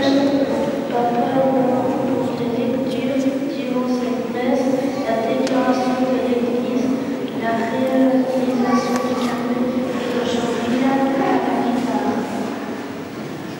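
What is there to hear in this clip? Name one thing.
A congregation sings together in an echoing church.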